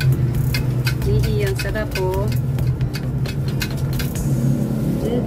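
A wire whisk clinks and swishes against a metal pot while stirring liquid.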